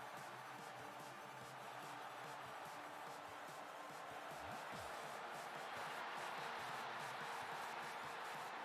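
A stadium crowd roars steadily and swells louder.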